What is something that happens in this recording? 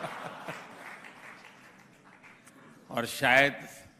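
An audience laughs heartily.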